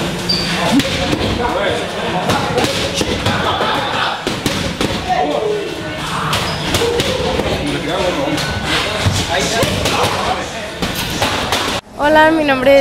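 Boxing gloves thump repeatedly against padded strike shields.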